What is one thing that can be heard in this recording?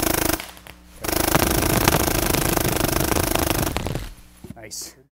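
A paintball marker fires a rapid burst of shots.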